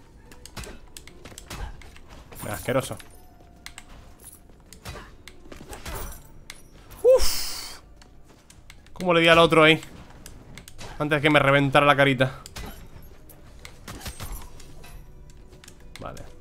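Axe swings whoosh and thud against enemies in a video game.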